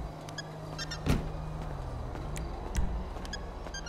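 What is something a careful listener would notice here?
Car doors swing open with a thud.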